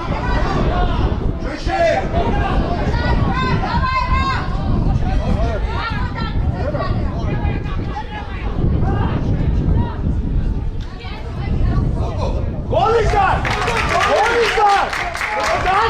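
Men shout to each other across an outdoor football pitch.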